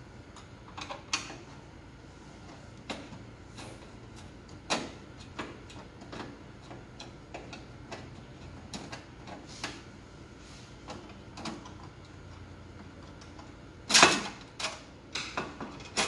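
A screwdriver clicks and scrapes against metal parts.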